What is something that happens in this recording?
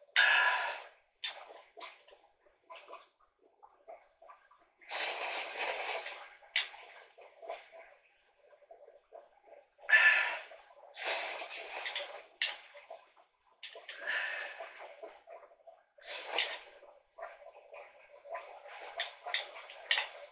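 A person slurps noodles loudly.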